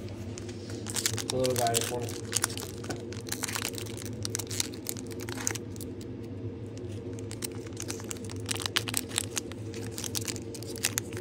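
A foil card wrapper crinkles and tears as hands open it.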